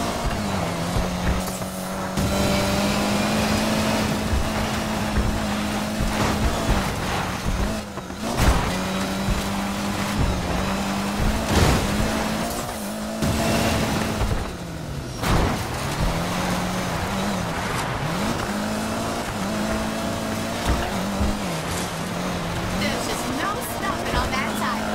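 A car engine roars steadily, its pitch dipping briefly now and then.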